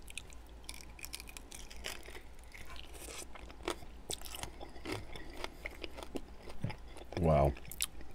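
A man bites and chews sauce-covered chicken wings close to a microphone.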